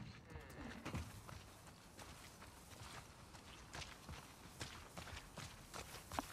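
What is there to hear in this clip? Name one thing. Footsteps swish through tall grass outdoors.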